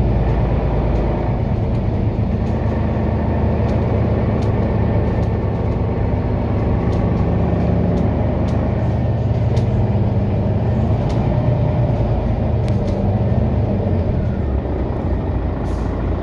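A vehicle's engine hums as it drives along a road.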